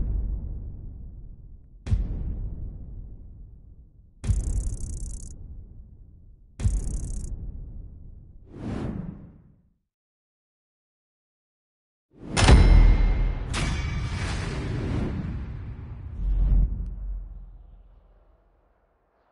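Deep booming hits sound one after another, each fading slowly.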